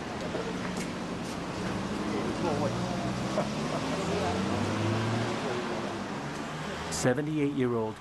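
A crowd murmurs outdoors nearby.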